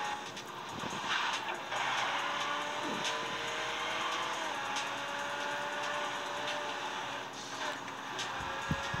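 Tyres screech as a car skids through a turn.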